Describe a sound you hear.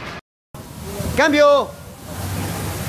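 A man shouts out briefly.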